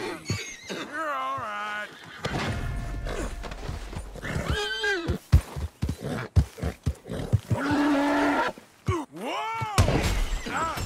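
A horse whinnies shrilly.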